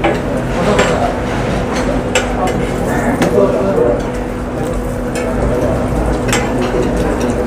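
A metal spatula scrapes and taps against a griddle.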